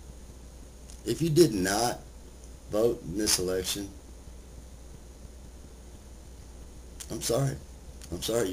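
A middle-aged man speaks calmly and close to the microphone, in short phrases with pauses.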